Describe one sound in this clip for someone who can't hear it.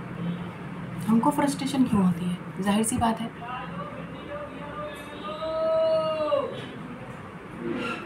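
A young woman speaks close by, calmly and with feeling.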